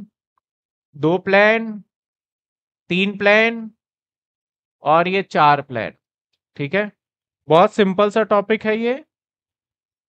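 A man speaks calmly and clearly into a close microphone, explaining in short phrases.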